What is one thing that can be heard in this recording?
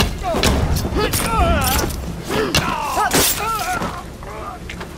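A man groans and shouts in pain.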